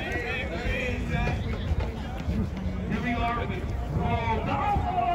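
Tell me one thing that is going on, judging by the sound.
A crowd of young people shouts and cheers outdoors at a distance.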